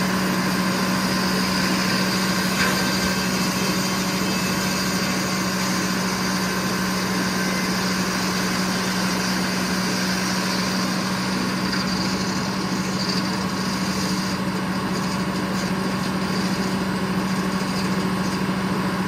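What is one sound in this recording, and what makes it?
A sawmill's engine drones steadily and loudly.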